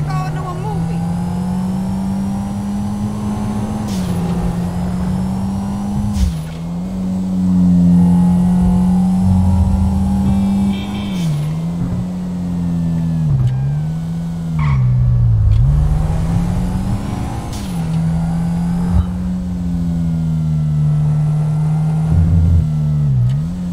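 A car engine hums steadily and rises and falls in pitch as the car speeds up and slows down.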